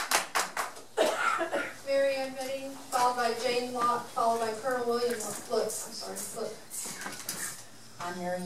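A woman speaks calmly through a microphone over a loudspeaker in a room.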